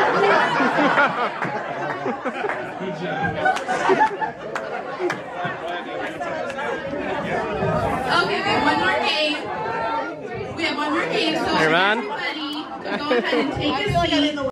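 A crowd of men and women chat and laugh nearby in a room.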